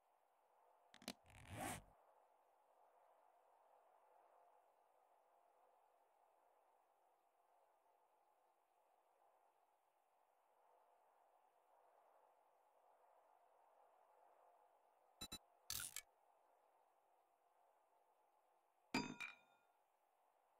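Soft interface clicks sound a few times.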